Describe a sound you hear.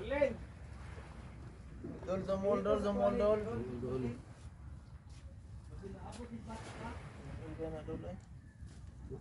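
Men talk casually close by, outdoors.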